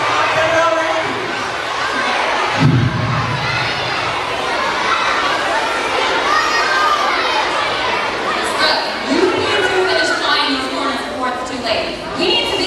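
Children in an audience chatter and murmur throughout a large echoing hall.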